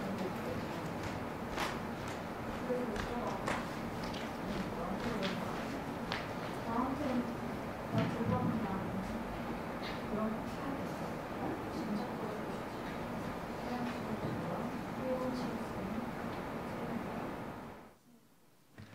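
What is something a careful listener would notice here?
A young woman reads lines aloud into a microphone, heard faintly over a hum.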